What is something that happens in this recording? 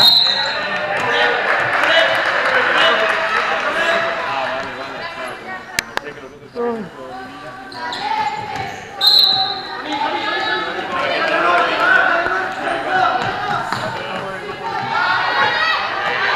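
Children shout and chatter throughout a large echoing hall.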